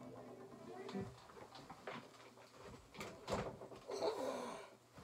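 A guitar bumps and rattles as it is handled.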